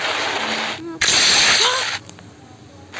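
A loud, crunching splat bursts out as a rider crashes.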